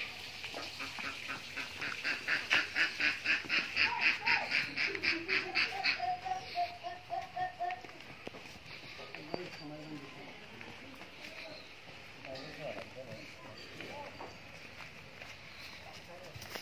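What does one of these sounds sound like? A cow's hooves thud softly on a dirt path.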